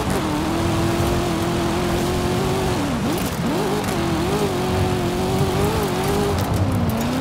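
Tyres crunch and hiss over loose gravel.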